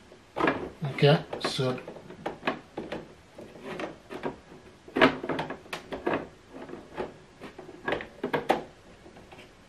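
Plastic ink cartridges click into place in a printer.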